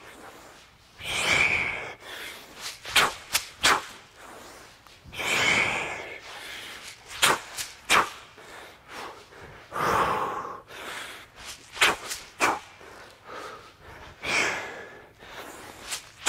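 A man breathes out hard with each effort.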